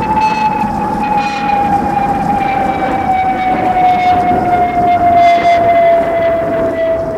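An electronic tone hums steadily through loudspeakers, slowly sinking in pitch, in a large echoing hall.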